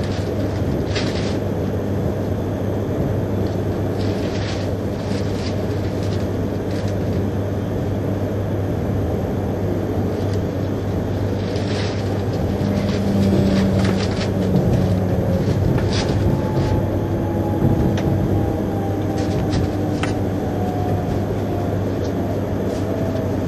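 A train rumbles steadily along at speed.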